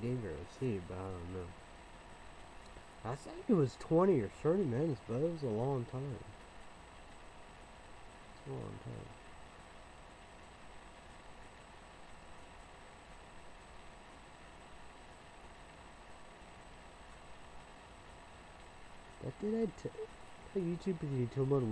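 A young man talks calmly and close by, in short bursts with long pauses.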